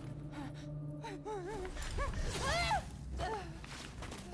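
A young woman screams close by.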